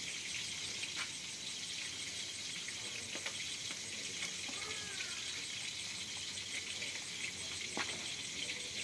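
Chopsticks clink against a plate.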